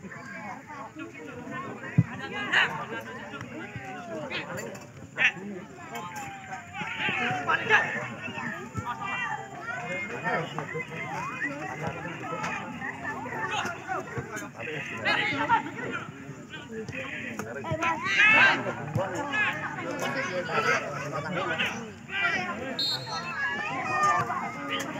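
Spectators shout and cheer nearby outdoors.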